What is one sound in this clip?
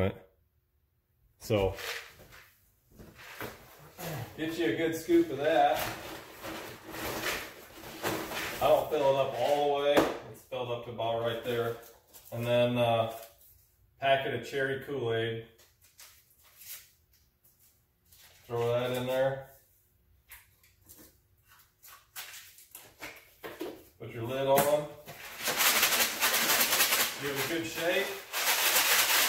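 Pellets rattle in a plastic bucket.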